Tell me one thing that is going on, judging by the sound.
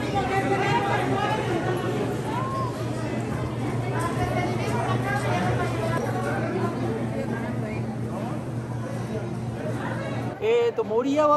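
A crowd murmurs and chatters in a busy, echoing hall.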